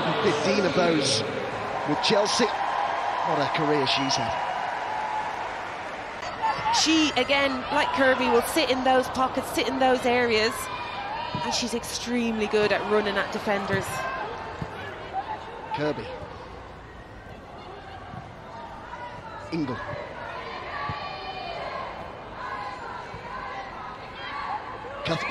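A crowd murmurs in a large open stadium.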